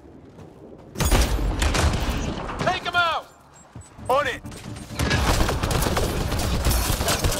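Gunfire crackles in loud bursts.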